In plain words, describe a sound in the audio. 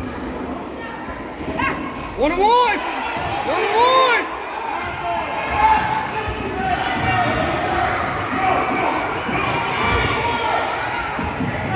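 A crowd of spectators murmurs and calls out in an echoing gym.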